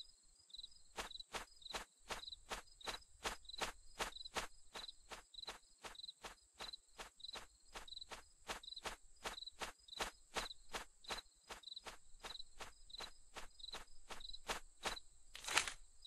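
Quick footsteps patter steadily on stone paving.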